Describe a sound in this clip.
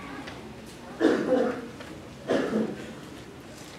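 A middle-aged man speaks into a handheld microphone over loudspeakers in a reverberant room.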